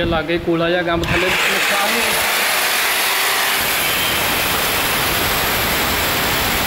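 An angle grinder whines steadily at high speed.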